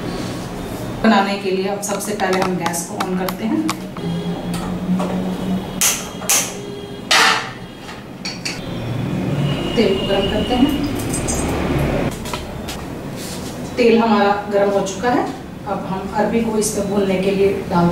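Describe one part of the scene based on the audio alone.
A woman speaks calmly and clearly close by.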